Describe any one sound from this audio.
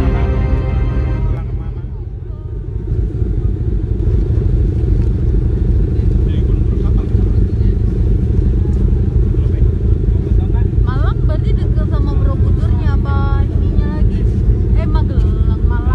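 A ship's engine rumbles low and steadily.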